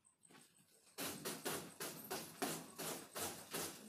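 A broom sweeps briskly across a cloth sheet in quick strokes.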